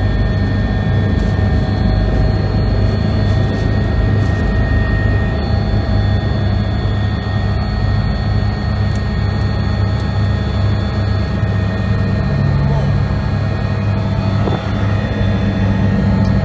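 A helicopter engine and rotor roar steadily from inside the cabin.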